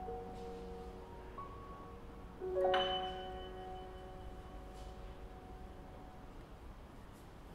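A piano plays soft notes.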